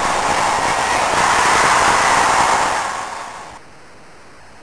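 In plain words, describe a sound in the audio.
A stadium crowd cheers loudly, then fades.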